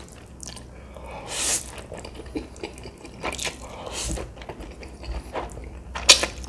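A man slurps noodles loudly, close to a microphone.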